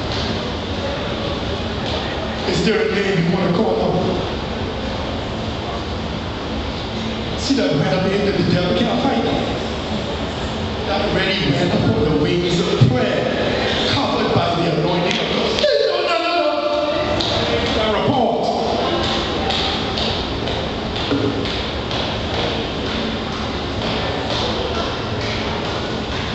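A congregation murmurs and calls out in response.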